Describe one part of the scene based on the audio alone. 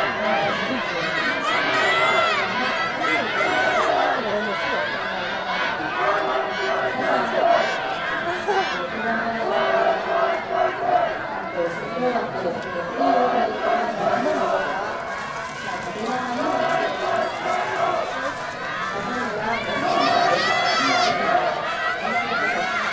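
A crowd of spectators shouts and cheers from the stands, from some distance.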